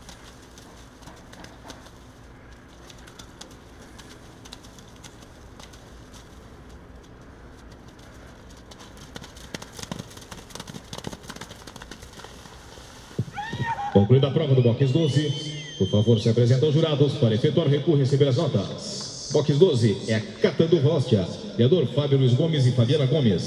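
A horse's hooves splash and thud through wet mud.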